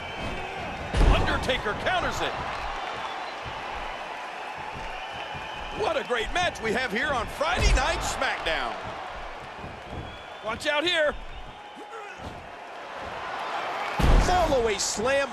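A heavy body slams down onto a wrestling ring mat with a loud thud.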